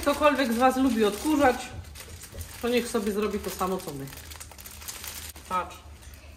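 Paper rustles as it is unwrapped.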